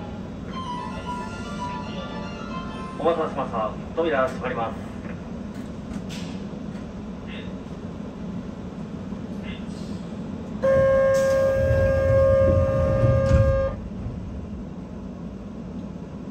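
A train hums and rumbles steadily in a tunnel.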